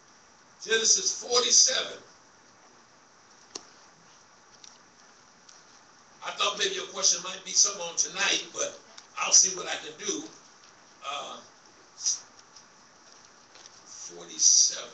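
A man preaches through a microphone in an echoing hall, speaking in bursts with pauses.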